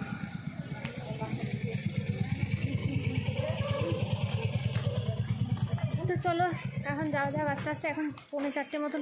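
A motorcycle engine idles nearby with a low throb.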